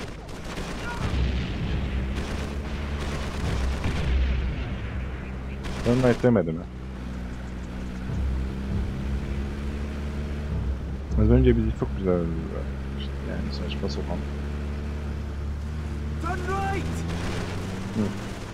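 A mounted machine gun fires in bursts.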